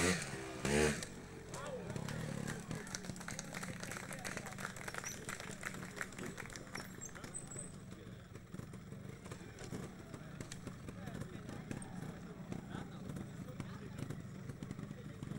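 A motorcycle engine putters and chugs at low speed.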